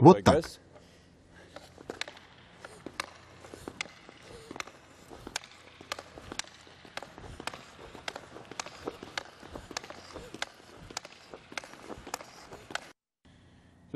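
Ice skates scrape and click on ice.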